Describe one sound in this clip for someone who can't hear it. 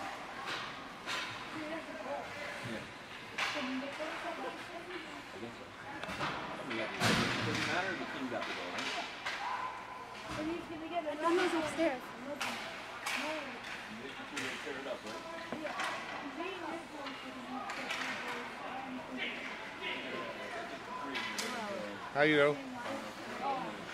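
Hockey sticks clack against a puck and the ice.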